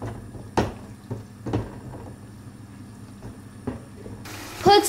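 A potato masher thumps and squelches through soft potatoes in a metal pot.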